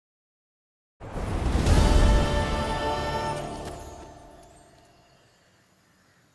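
A deep magical whoosh swells and slowly fades.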